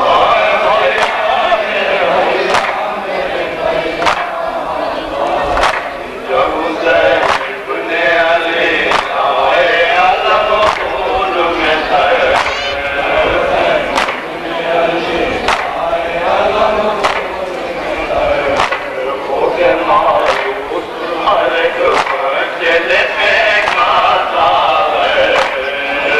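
A man chants loudly into a microphone, heard through loudspeakers.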